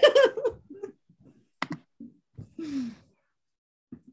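A woman laughs and talks cheerfully over an online call.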